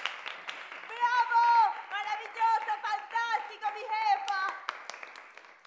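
A young woman shouts and cheers.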